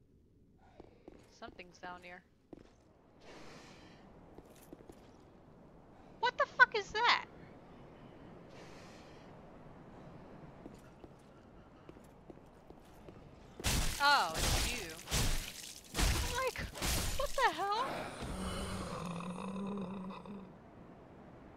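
A young woman talks into a headset microphone.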